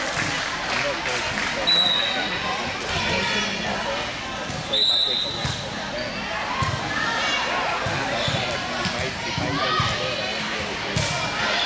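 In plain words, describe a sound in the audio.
Many voices of young women and spectators chatter and call out in a large echoing gym.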